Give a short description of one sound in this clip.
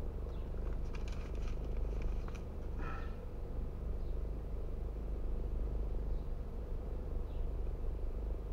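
A car engine idles nearby with a steady low rumble.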